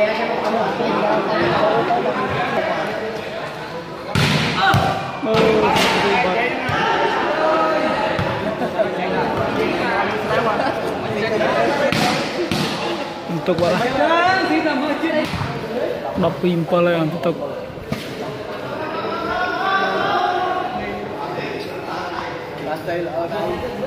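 A crowd of men chatters and calls out in a large echoing hall.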